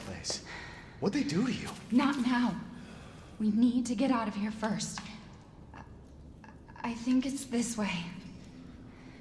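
A young woman speaks quietly and urgently, close by.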